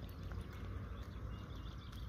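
An egg cracks against a pan.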